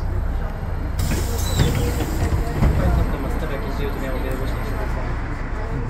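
Tram wheels clatter and squeal on the rails.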